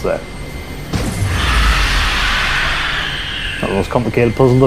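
A laser blast roars and whooshes.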